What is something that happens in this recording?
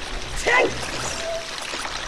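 Water splashes underfoot.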